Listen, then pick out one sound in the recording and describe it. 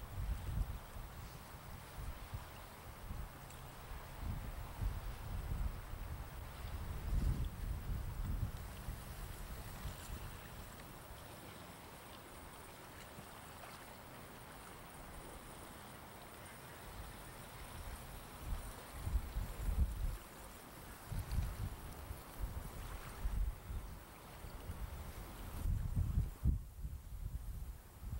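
Small waves lap against the shore.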